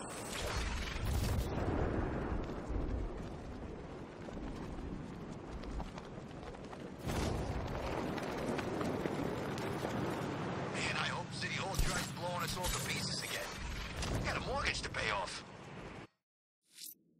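Wind rushes past a gliding figure.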